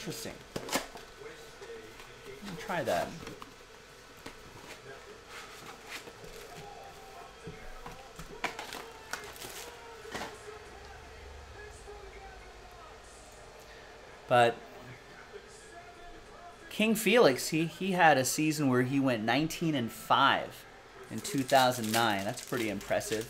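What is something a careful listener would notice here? Cardboard and paper wrappers rustle and crinkle as packs are handled.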